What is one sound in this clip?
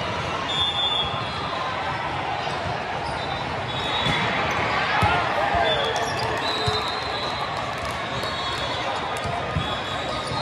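Sneakers squeak sharply on a court floor.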